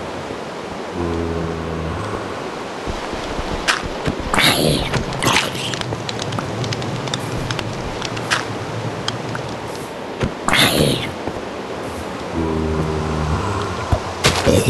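A zombie moans with a low, hollow groan.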